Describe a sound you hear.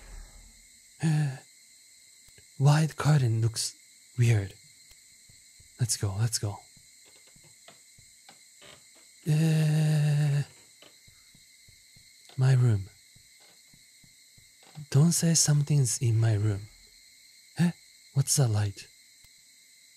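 A young man talks in short bursts into a close microphone, with animation.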